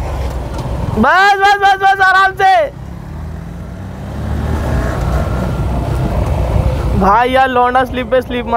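A motorcycle engine revs up loudly and drops back.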